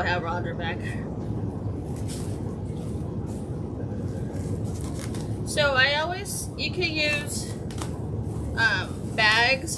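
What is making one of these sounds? Scissors snip through plastic.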